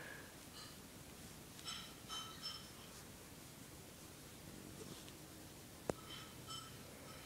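A hand strokes a cat's fur with a soft rustle.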